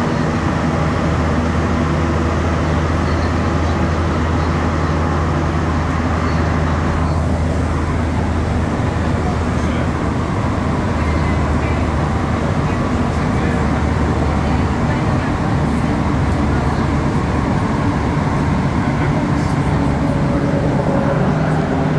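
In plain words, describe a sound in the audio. A train rumbles and hums steadily as it moves along the tracks.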